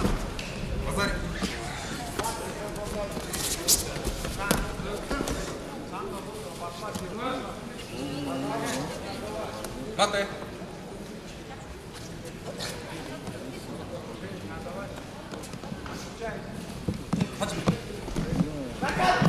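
A crowd of spectators shouts and calls out in a large echoing hall.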